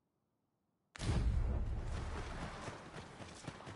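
Footsteps thud quickly on grassy ground as a figure runs.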